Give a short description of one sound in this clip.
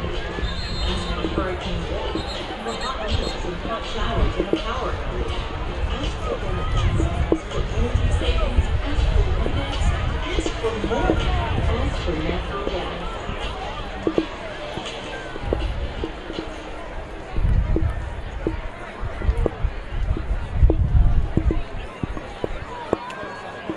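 A crowd murmurs in an open-air stadium.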